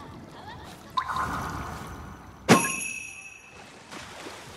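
A short electronic chime rings out and fades.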